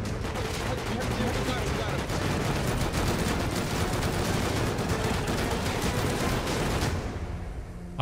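Gunfire crackles in rapid bursts at close range.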